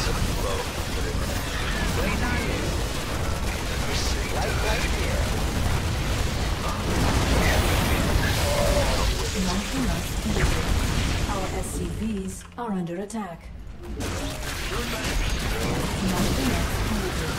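Game battle sounds of gunfire and explosions play throughout.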